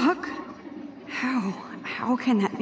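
A young woman asks in a puzzled voice.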